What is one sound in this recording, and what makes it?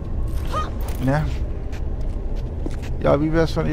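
Footsteps tap softly on stone.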